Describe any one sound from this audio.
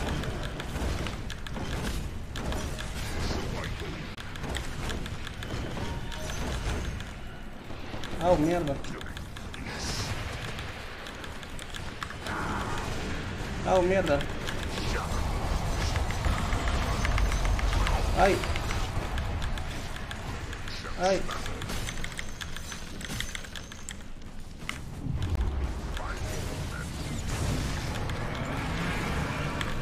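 Game sound effects of spells and blasts play throughout.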